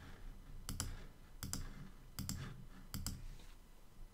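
Mouse clicks tap sharply several times.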